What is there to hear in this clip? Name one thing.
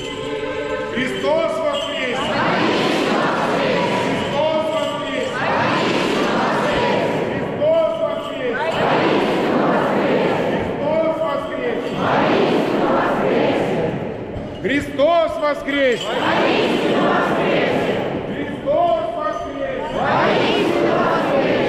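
An elderly man calls out loudly in a large echoing hall.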